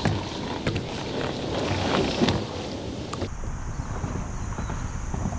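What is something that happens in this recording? Water splashes and laps gently close by.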